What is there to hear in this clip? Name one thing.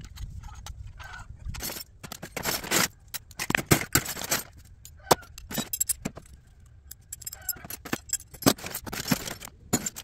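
Metal scraps clatter and clank as they are tossed into a plastic bin.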